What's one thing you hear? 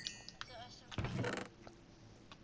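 A wooden chest creaks open.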